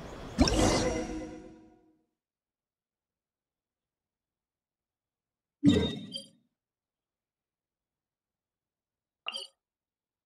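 Soft electronic menu chimes ring out a few times.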